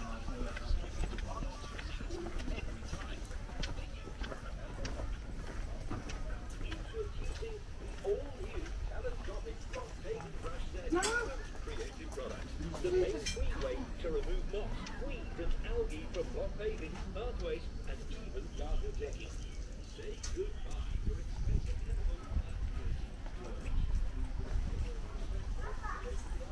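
Footsteps shuffle on a hard floor nearby.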